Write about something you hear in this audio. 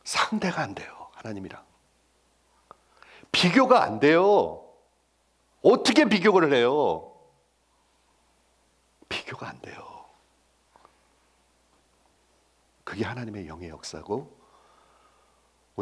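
A middle-aged man speaks with animation into a headset microphone, pausing between phrases.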